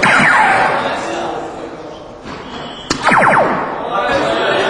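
An electronic dartboard plays a quick falling chime.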